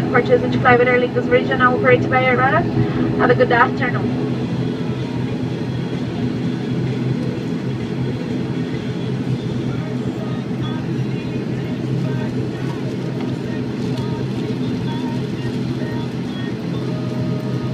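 A propeller engine drones steadily close by.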